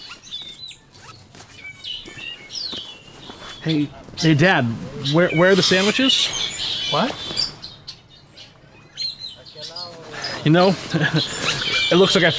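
A man rustles through a fabric backpack.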